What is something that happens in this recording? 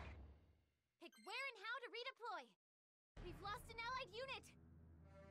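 Short electronic menu beeps chime.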